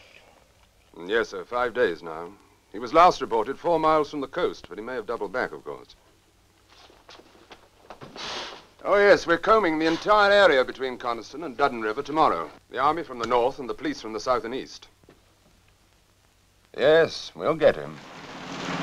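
A man speaks firmly on a telephone.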